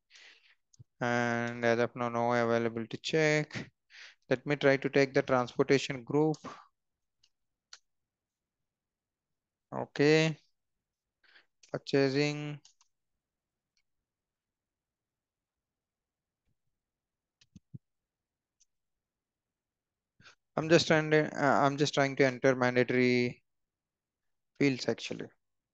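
A young man speaks calmly into a headset microphone, with pauses.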